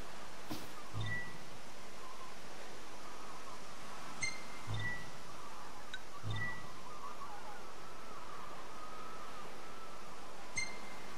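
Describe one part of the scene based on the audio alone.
Short electronic menu chimes beep now and then.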